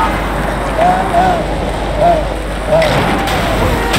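A car scrapes and grinds against a road barrier with a shower of sparks.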